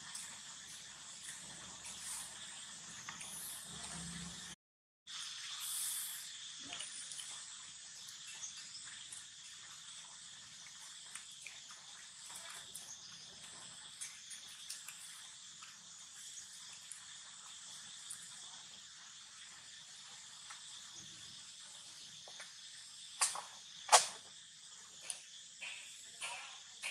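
A small monkey chews and nibbles on food close by.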